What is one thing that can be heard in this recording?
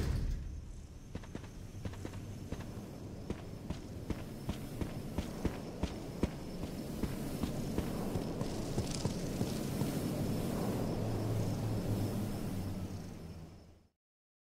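Footsteps crunch steadily on stone and debris.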